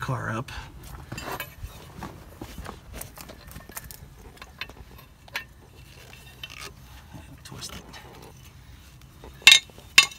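A metal car jack clicks and rattles as a handle cranks it.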